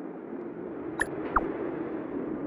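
A short electronic chime sounds twice.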